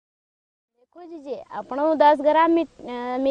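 A young woman speaks calmly outdoors.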